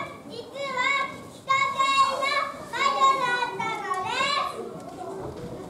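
Young children sing together loudly in an echoing hall.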